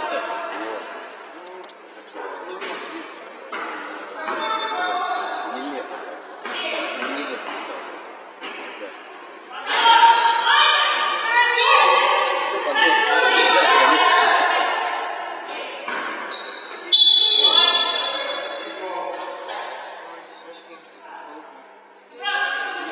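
Young women players shout to each other in a large echoing hall.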